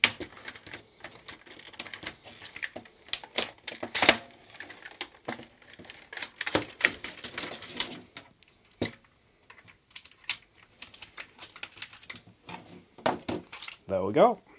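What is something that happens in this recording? Plastic parts clatter and click as they are handled.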